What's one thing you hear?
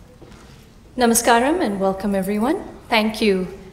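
A woman sings a slow melody through loudspeakers in a large hall.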